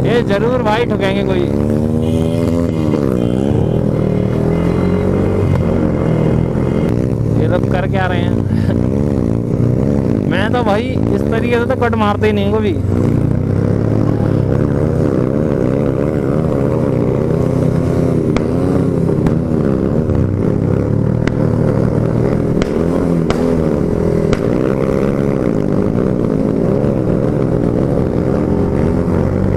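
A motorcycle engine hums and revs steadily close by.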